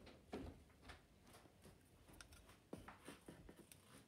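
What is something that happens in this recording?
A plastic bottle is handled with soft knocks.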